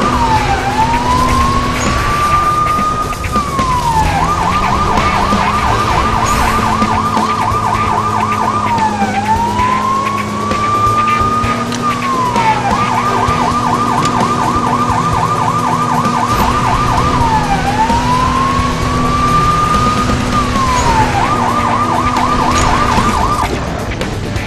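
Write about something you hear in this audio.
A police siren wails, switching between a slow rise and fall and a fast warble.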